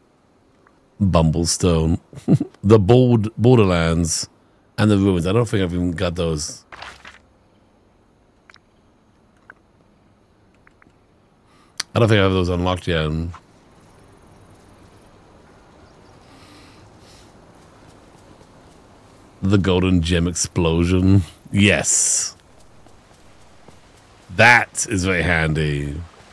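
A man talks casually and close to a microphone, in bursts with pauses.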